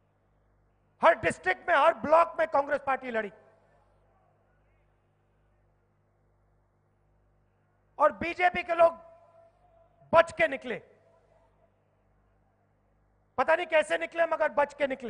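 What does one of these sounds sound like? A young man speaks forcefully into a microphone through loudspeakers, pausing between phrases.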